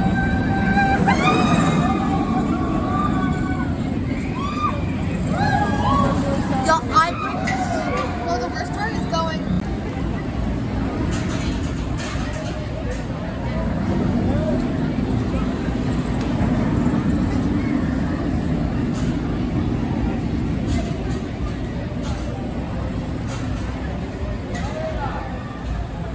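A roller coaster train roars and rumbles along its track.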